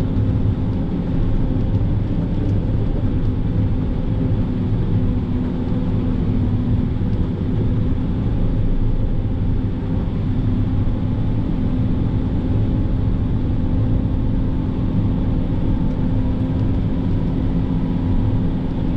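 A heavy diesel engine rumbles steadily from inside a vehicle cab.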